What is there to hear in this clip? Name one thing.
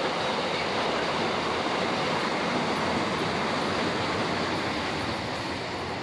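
A long freight train rumbles and clatters steadily past on the rails.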